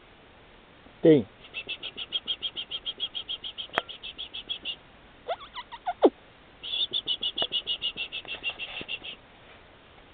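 Puppies whine and yelp in quick, high squeaks close by.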